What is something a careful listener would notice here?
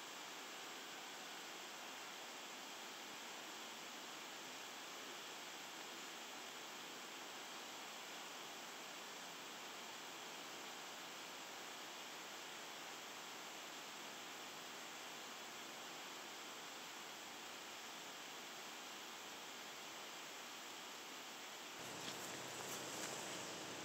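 A small stream flows and ripples over stones.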